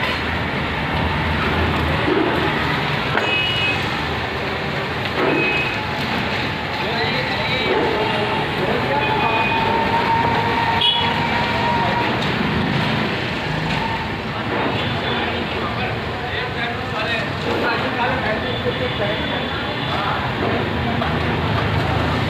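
Street traffic hums steadily in the background.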